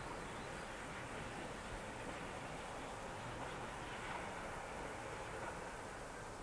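A train rumbles along the tracks in the distance.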